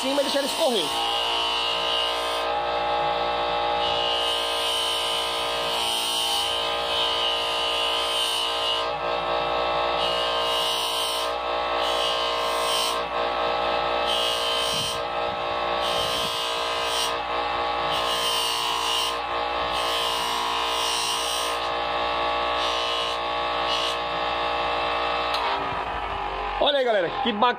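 A small object rasps against a spinning polishing wheel.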